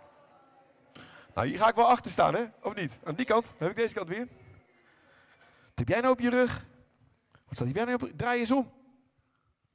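A man speaks loudly through a microphone in a large hall.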